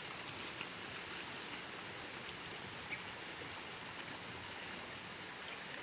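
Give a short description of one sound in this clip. Footsteps rustle through tall grass and leaves close by.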